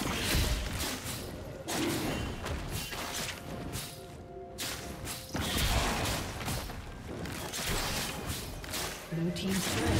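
Magic spells crackle and burst in a fight.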